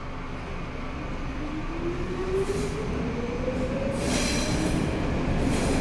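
A subway train pulls away, its motor whining higher as it speeds up.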